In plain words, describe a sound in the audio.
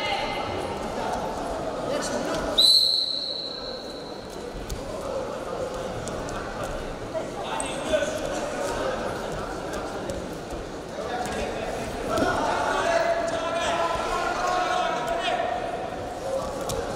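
A crowd in a large echoing hall murmurs and cheers, growing louder near the end.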